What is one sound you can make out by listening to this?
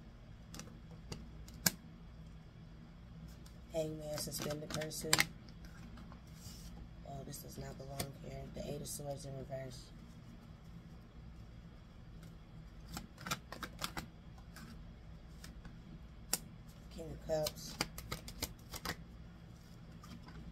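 Cards riffle and flick as they are shuffled by hand.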